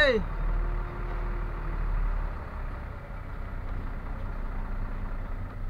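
A vehicle engine rumbles low and steady from inside the cab.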